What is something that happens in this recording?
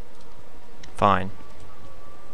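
A young man yells out briefly, close to a microphone.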